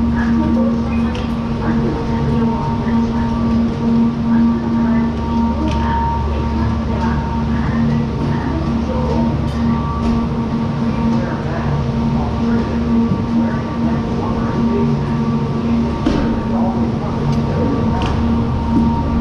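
Chairlift chairs clank and knock as they swing through the station.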